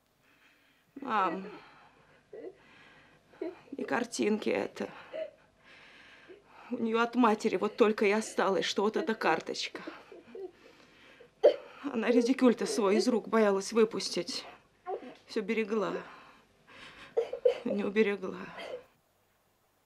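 A woman talks calmly and earnestly close by.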